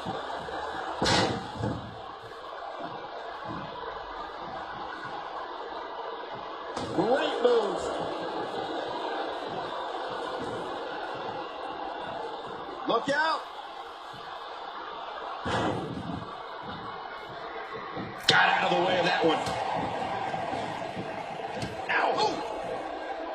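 Heavy bodies slam down onto a wrestling ring mat with loud thuds.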